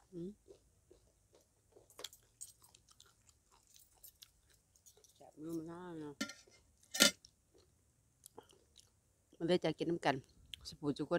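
A young woman chews and slurps food loudly.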